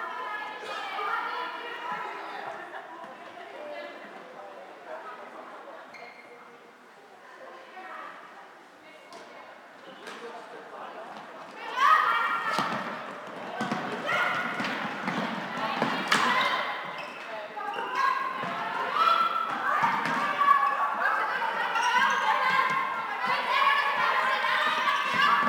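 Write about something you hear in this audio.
Plastic sticks clack against a ball in a large echoing hall.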